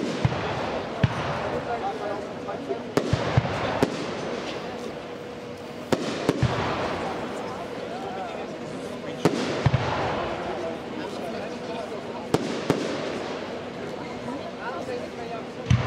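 Fireworks crackle and sizzle after each burst.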